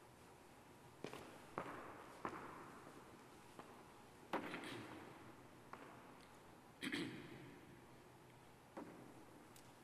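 Footsteps echo through a large hall.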